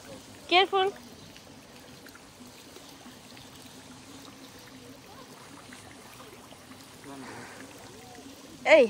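Feet slosh softly through shallow water.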